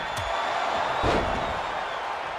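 A heavy body slams onto a wrestling mat with a loud thud.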